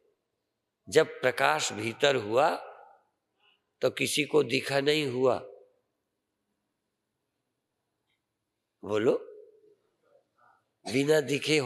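An elderly man speaks with emphasis into a microphone, in phrases broken by pauses.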